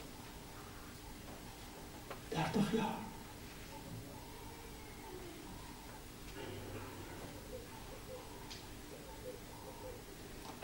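An elderly man preaches with animation through a microphone.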